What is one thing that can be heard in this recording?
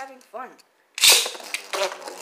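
Spinning tops are launched with a sharp snap.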